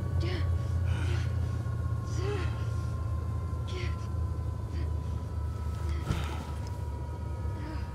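A helicopter engine drones with a steady low rumble.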